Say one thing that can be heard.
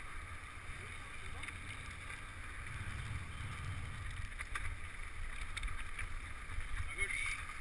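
Wind rumbles across a microphone outdoors.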